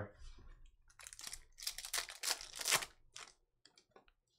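Foil card pack wrappers crinkle and rustle in hands.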